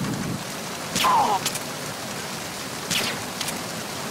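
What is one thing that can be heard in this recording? A silenced pistol fires two sharp shots.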